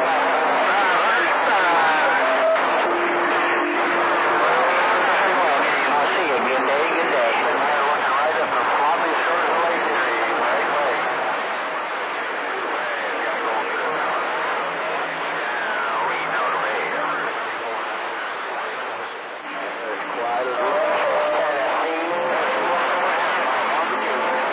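A radio receiver crackles and warbles with a noisy, garbled signal.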